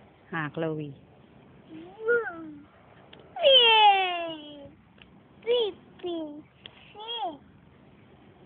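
A small girl squeals and babbles close by.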